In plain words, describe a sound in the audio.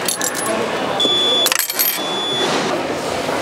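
A ticket machine beeps.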